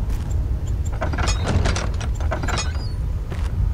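A heavy wooden door creaks and rattles open.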